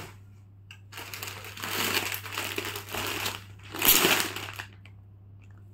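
A plastic bag crinkles as hands press it flat.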